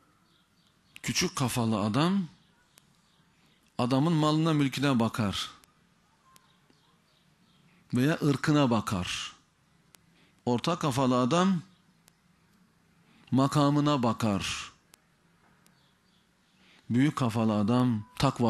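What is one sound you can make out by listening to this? A man speaks with emphasis into a microphone, in short bursts separated by pauses.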